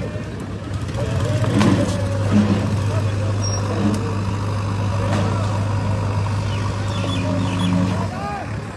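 A digger's engine rumbles nearby.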